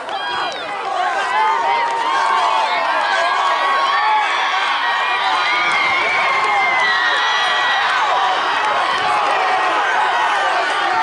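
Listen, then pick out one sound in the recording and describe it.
A crowd cheers loudly and steadily.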